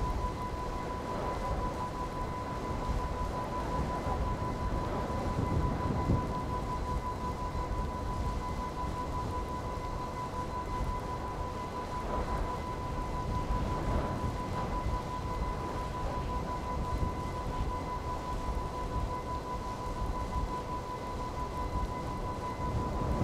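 A motorbike engine runs steadily at low speed.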